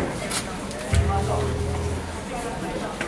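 A bass guitar plays a low booming note through an amplifier.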